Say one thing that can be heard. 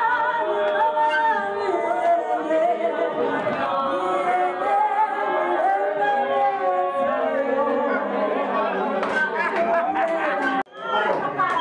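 A group of young men and women sing together loudly.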